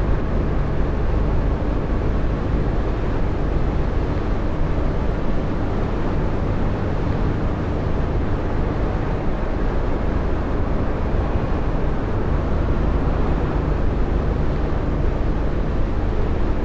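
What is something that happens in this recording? A bus engine hums steadily at cruising speed.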